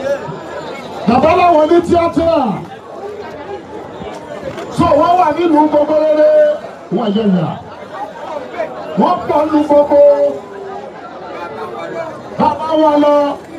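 A man chants loudly in bursts close by.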